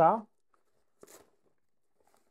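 A zipper rasps briefly as it is pulled.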